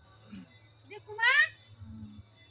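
A woman cries out in a rising, high voice nearby.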